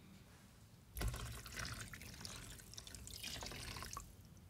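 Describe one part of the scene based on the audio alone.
Water pours from a small cup into a tub.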